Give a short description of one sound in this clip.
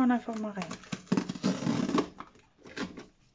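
Tape tears off a cardboard box.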